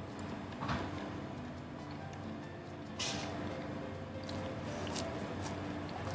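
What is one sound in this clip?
A man chews food noisily close by.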